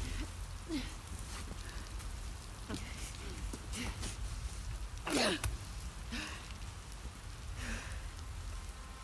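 A young woman gasps and groans in pain, close by.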